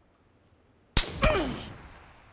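A bullet strikes with a sharp thud.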